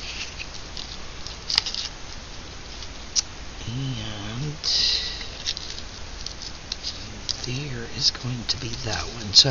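Paper rustles and taps softly as it is handled.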